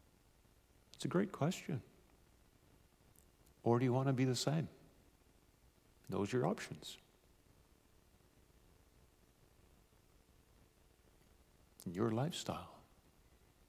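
A middle-aged man speaks calmly in short phrases through a microphone, with pauses between them.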